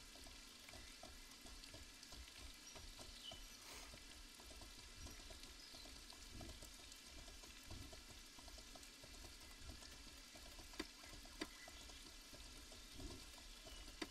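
A mount's hooves thud softly on grass at a steady pace.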